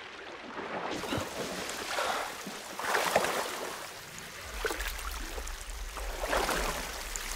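Water splashes lightly as a swimmer moves along the surface.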